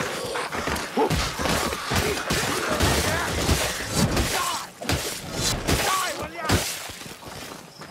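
Creatures snarl and shriek in pain.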